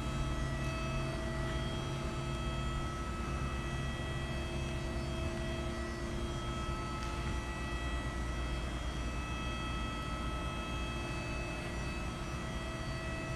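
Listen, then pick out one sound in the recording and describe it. Arcade game machines hum and play steady electronic tones.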